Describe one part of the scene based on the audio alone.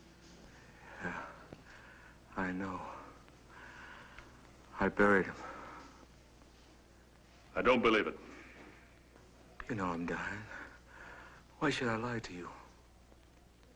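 A man gasps and speaks in a strained, frightened voice.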